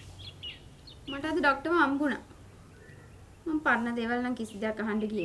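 A younger woman answers in a raised voice nearby.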